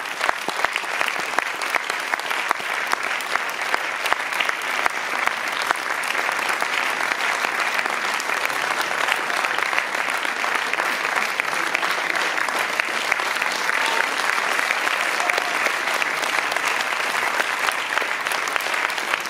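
A crowd applauds steadily in a large room.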